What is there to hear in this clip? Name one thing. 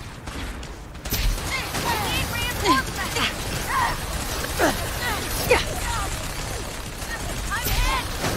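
A flamethrower roars and hisses in bursts.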